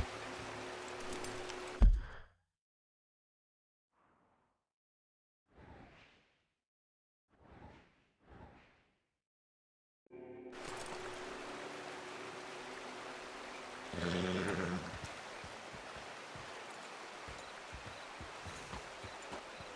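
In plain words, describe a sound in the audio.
A horse's hooves thud at a slow walk on soft ground.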